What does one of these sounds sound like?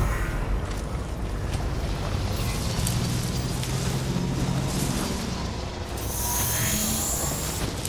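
Tyres crunch over gravel and dirt.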